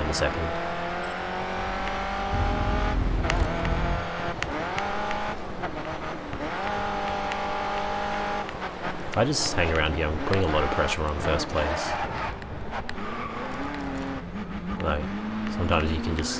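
A racing car engine roars at high revs, shifting through gears.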